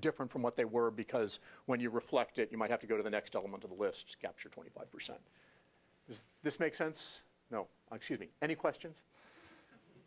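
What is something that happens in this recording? A middle-aged man lectures with animation through a clip-on microphone.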